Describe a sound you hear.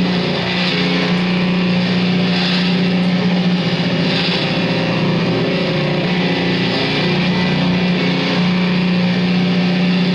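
An electric guitar is played with scraping, noisy strums.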